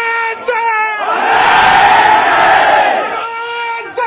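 A crowd of men shouts loudly in unison outdoors.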